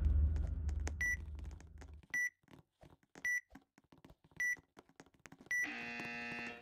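Short electronic beeps sound at even intervals, about once a second.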